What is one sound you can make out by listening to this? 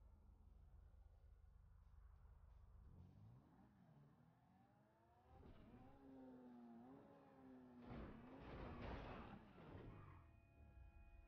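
A car engine hums and revs while driving.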